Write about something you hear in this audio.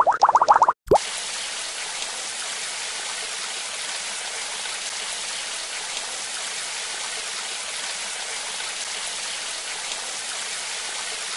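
Water sprays from a shower head in a steady hiss.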